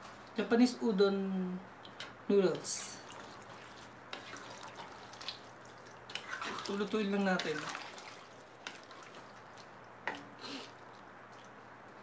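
A wooden spoon stirs and scrapes noodles in a pot.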